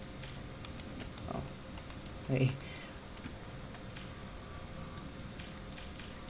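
A small metal hatch clicks open and shut.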